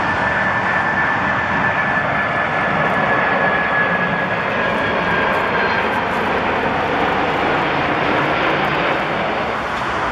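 A jet airliner's engines roar loudly as it passes low overhead.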